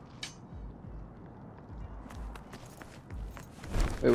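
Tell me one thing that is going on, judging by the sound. Footsteps crunch softly on rubble.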